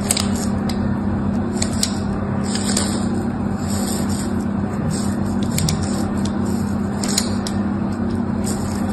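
A small blade scrapes and shaves soft soap up close.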